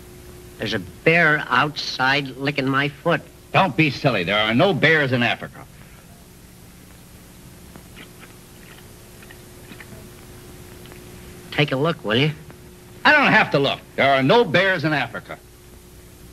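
A man speaks with animation, heard through an old, hissy recording.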